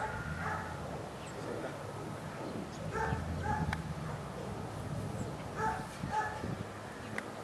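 A man calls out short commands to a dog outdoors.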